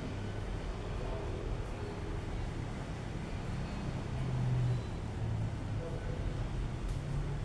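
Fingers rub through a man's hair during a head massage.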